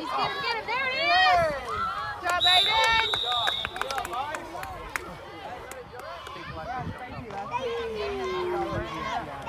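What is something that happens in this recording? Spectators and coaches shout and cheer with excitement outdoors.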